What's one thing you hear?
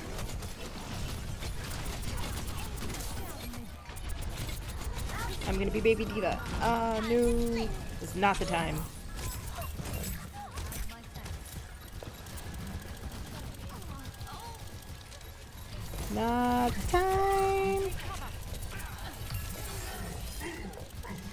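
Rapid gunfire crackles and zaps from a game.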